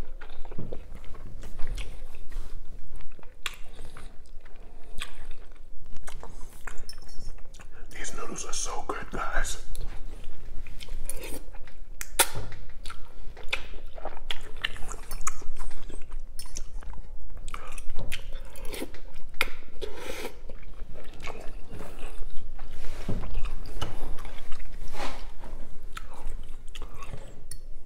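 A man slurps and chews noodles loudly, close up.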